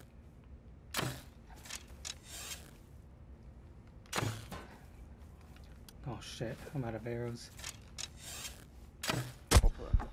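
A bowstring snaps as arrows are shot.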